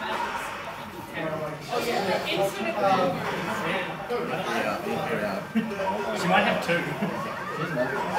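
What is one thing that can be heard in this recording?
A fighting game's blows and effects play loudly through a loudspeaker.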